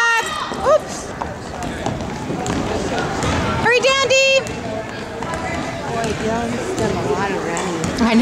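A crowd of spectators chatters and cheers in an echoing hall.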